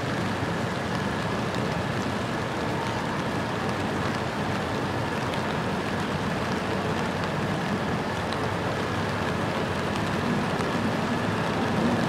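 Rain patters steadily on wet pavement.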